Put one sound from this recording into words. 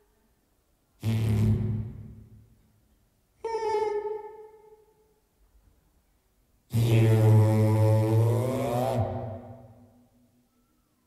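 A man shouts loudly into a microphone, booming over loudspeakers in a large echoing hall.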